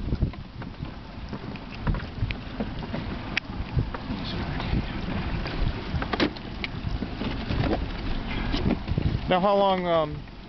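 Water laps against a boat's hull.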